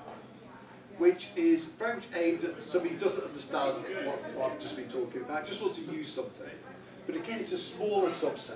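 A man speaks calmly and clearly to an audience.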